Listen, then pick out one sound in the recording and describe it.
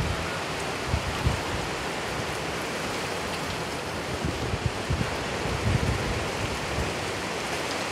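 Strong wind gusts rumble against the microphone.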